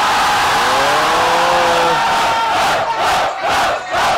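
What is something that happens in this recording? A large crowd cheers and shouts loudly outdoors.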